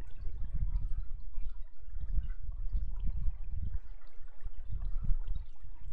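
Water churns with a low, muffled rumble.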